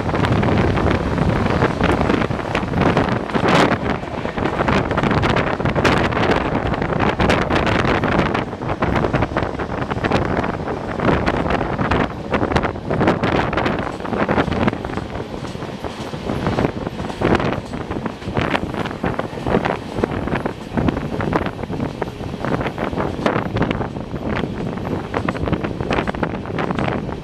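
Wind roars past the open doorway of a moving train.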